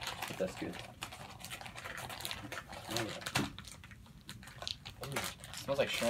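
A plastic wrapper crinkles and rustles.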